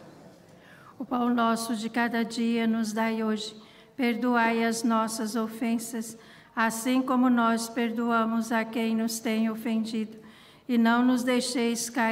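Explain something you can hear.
A woman sings a slow chant through a microphone.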